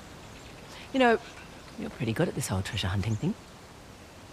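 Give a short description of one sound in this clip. A second young woman answers calmly.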